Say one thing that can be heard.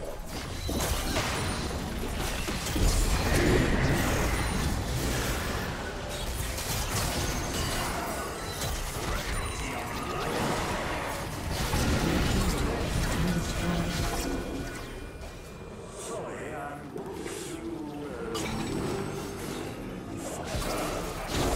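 Fantasy video game spells and attacks crackle, whoosh and explode in quick bursts.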